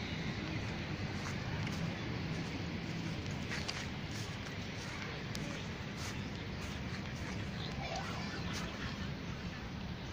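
Footsteps swish softly through grass.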